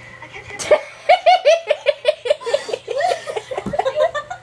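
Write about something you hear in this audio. A girl laughs loudly in rapid bursts close by.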